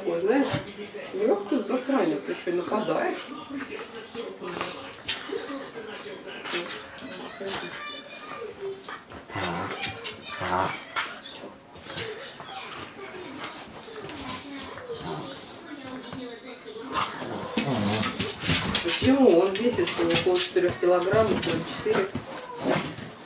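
Dogs' paws scuffle and thump on soft cushions.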